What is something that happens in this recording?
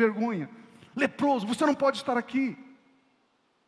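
A middle-aged man speaks calmly through a headset microphone.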